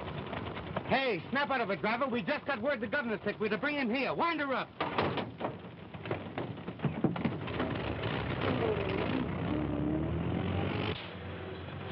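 An old car engine sputters and starts running.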